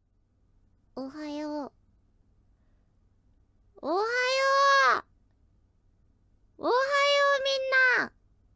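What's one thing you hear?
A young woman speaks in a high, sleepy voice close to a microphone, in three short drawn-out phrases.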